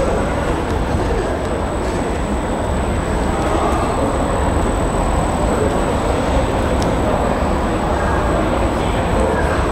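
Large fans whir steadily overhead.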